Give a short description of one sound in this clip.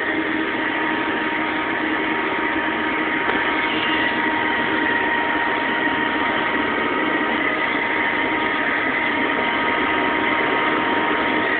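A handheld vacuum cleaner whirs steadily close by.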